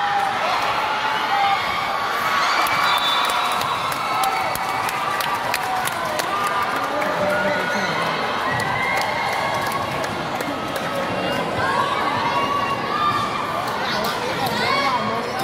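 A crowd of spectators chatters and cheers throughout a large echoing hall.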